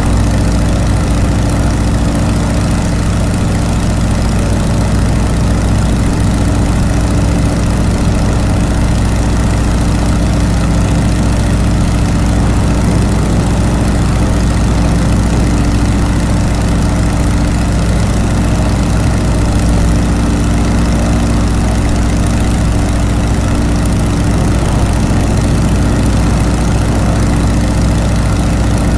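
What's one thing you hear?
Wind rushes past an open cockpit.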